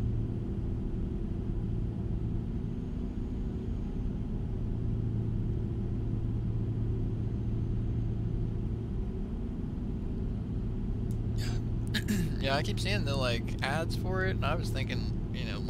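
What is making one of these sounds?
A truck engine drones steadily while driving.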